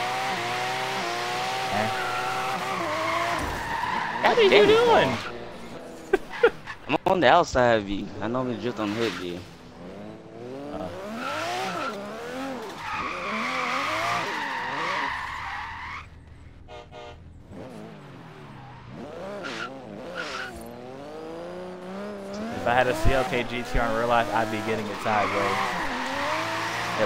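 A racing car engine revs and roars loudly, rising and falling in pitch.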